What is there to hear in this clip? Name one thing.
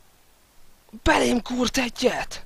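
A young man yells in fright into a close microphone.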